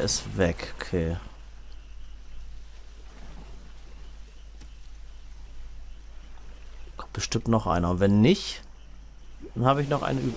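Water laps softly.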